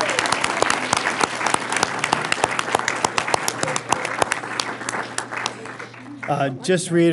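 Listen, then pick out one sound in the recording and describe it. An audience claps and applauds in a large room.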